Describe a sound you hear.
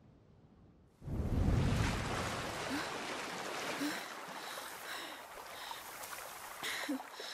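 Wind rustles through grass and leaves outdoors.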